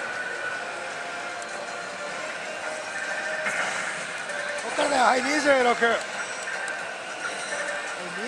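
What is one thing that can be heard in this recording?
A slot machine plays electronic jingles and chimes.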